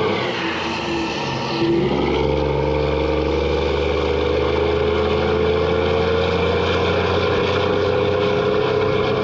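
A heavy truck drives along a road.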